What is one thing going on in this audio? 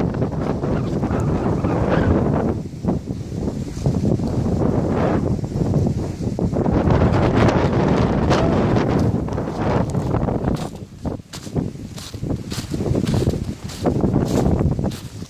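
Wind blows hard and roars into the microphone outdoors.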